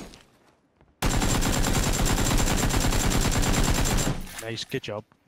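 An automatic rifle fires a rapid, steady burst of shots.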